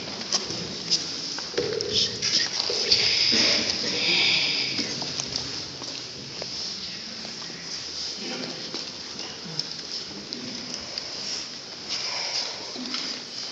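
Children and adults murmur softly in an echoing hall.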